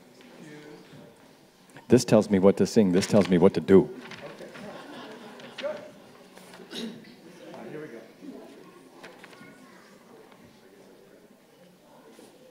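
An audience murmurs quietly.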